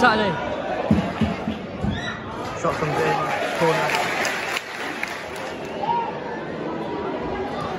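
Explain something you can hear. Nearby spectators talk and shout.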